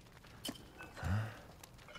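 A small metal tin is picked up with a dull clunk.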